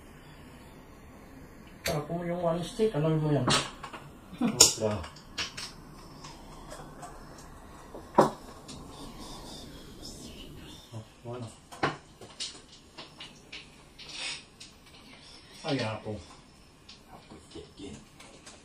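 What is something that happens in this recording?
Mahjong tiles clack and click against each other on a table.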